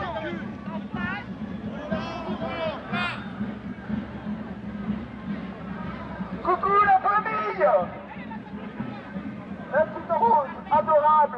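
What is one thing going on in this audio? A crowd of men and women shout and chant outdoors.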